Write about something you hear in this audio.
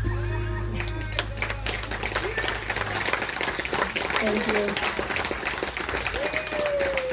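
Electric guitars strum and pick.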